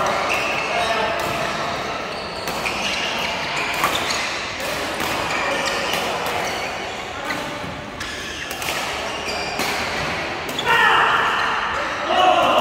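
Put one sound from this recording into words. Shuttlecocks are struck with rackets in sharp pops, echoing in a large hall.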